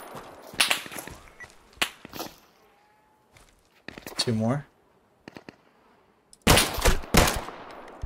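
Loud gunshots crack and echo across open ground.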